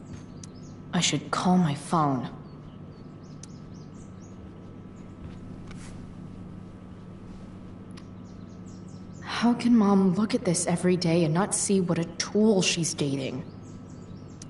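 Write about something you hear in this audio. A young woman speaks quietly and thoughtfully.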